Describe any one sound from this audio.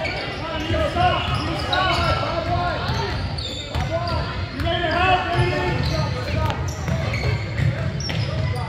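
A crowd of spectators chatters in an echoing gym.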